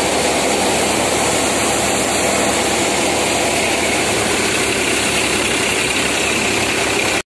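A tractor engine runs with a steady low rumble.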